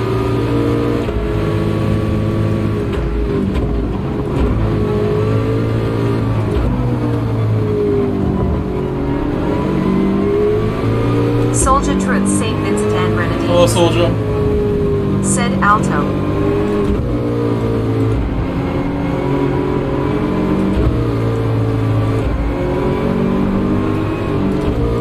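A racing car engine roars, rising and falling in pitch in steps.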